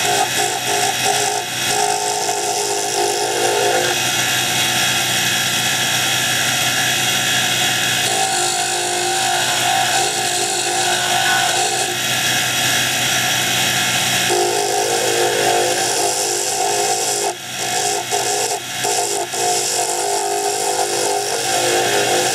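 A wood lathe runs, spinning a hardwood blank.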